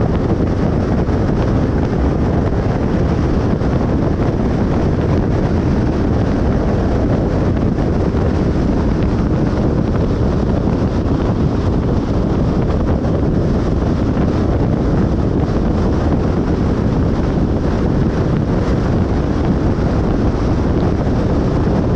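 Tyres roar steadily on a highway as a car drives along.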